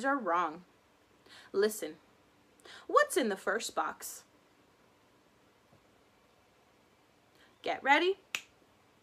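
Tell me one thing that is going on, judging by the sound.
A young woman speaks calmly and close up, with pauses.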